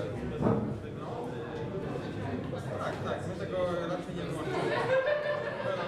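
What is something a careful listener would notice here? A crowd of young men and women chatter nearby in an echoing room.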